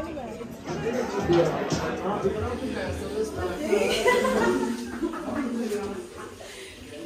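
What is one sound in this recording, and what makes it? A crowd of people chatter in a room.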